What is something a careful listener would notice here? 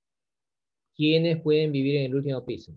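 A man speaks calmly into a microphone, heard as over an online call.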